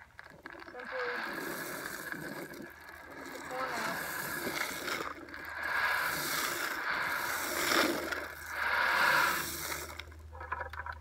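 Dry corn pours from a bucket and patters onto leaf litter.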